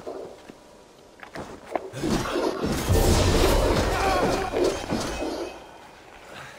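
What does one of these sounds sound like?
Blades clash and strike in a fight, with a sharp burst of impact.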